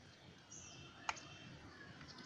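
A hand taps a plastic battery casing with a sharp click.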